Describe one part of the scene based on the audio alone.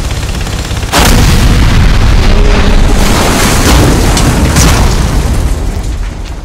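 Large explosions roar and rumble.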